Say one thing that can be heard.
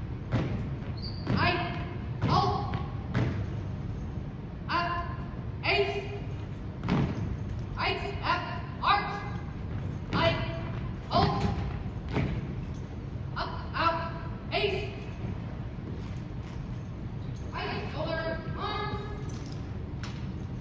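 A young man shouts drill commands in a large echoing hall.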